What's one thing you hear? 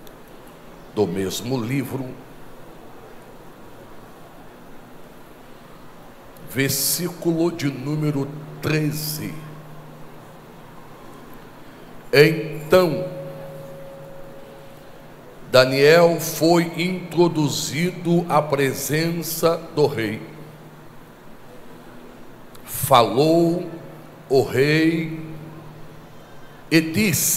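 A man preaches with emotion into a microphone, in bursts with pauses, heard through loudspeakers in a reverberant hall.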